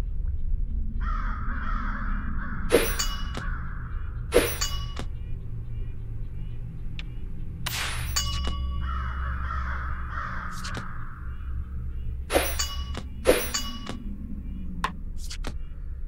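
Game cards land with sharp swishing effect sounds.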